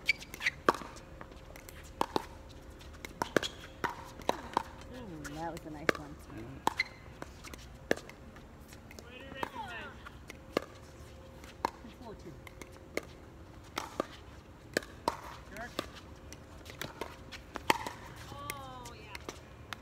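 Paddles smack a plastic ball back and forth outdoors.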